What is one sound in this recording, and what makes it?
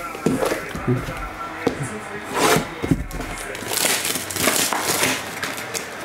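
Cardboard boxes scrape and tap on a table.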